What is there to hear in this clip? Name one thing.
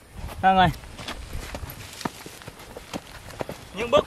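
Footsteps crunch on a dirt path through grass.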